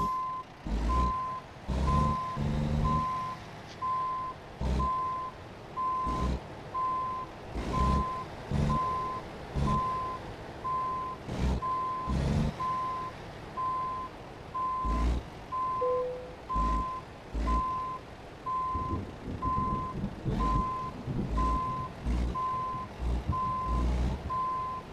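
A truck's reversing alarm beeps steadily.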